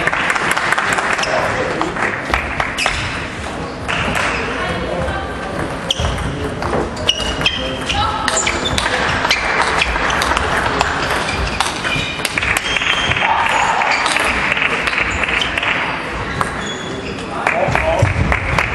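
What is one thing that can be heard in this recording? Players' shoes squeak on the floor in a large echoing hall.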